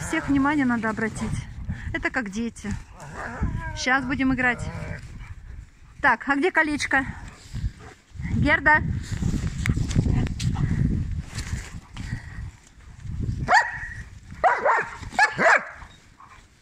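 Dogs yelp and whine playfully nearby.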